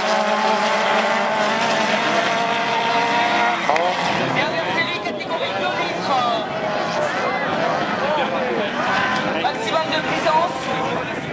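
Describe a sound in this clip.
Race car engines roar and whine steadily in the distance.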